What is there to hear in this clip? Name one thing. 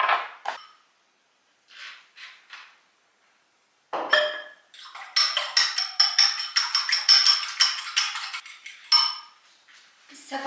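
Dishes clink and clatter in a rack.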